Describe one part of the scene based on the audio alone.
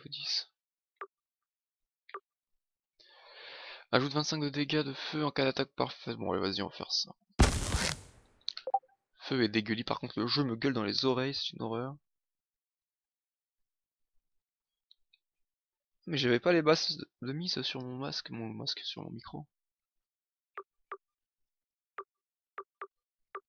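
Short menu blips tick now and then.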